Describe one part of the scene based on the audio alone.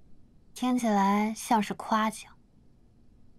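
A young woman speaks softly and playfully, close by.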